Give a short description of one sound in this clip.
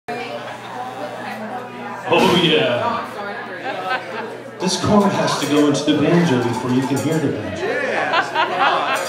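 A live band plays.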